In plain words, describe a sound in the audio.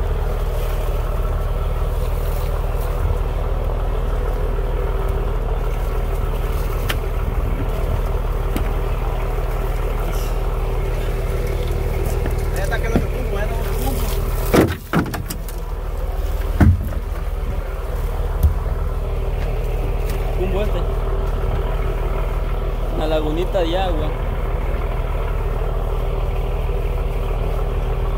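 A boat engine hums steadily throughout.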